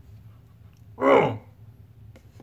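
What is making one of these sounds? A man lets out a short, loud cry.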